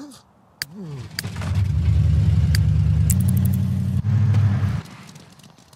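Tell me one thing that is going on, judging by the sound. A car engine rumbles loudly as the car drives off.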